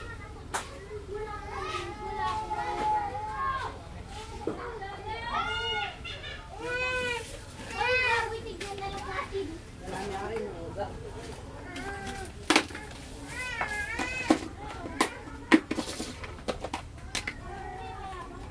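A young girl talks in a lively, sing-song voice close by.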